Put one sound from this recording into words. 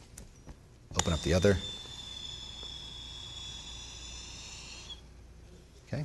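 Air rushes out of a balloon with a thin squeal.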